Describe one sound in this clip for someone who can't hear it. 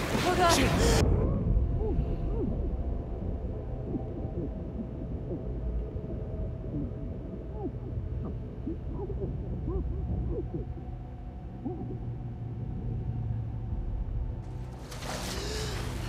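Muffled underwater rumbling and bubbling fills the air.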